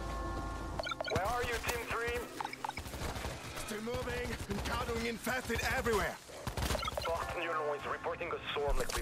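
A young man speaks into a headset microphone.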